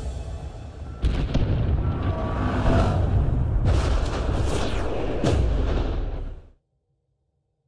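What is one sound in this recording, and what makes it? Loud explosions boom and rumble, then cut off into silence.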